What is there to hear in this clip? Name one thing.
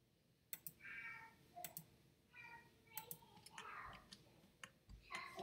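Short electronic chimes and clicks sound from a game's menu.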